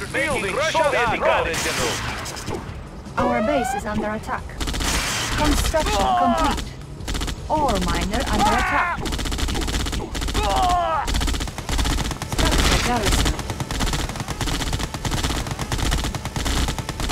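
Guns fire and explosions crackle in a battle.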